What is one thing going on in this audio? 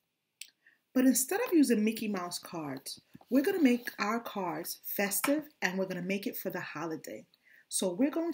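A woman talks calmly and steadily up close.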